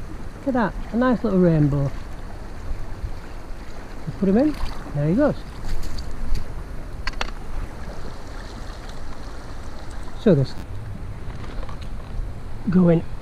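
A shallow river ripples and flows steadily nearby.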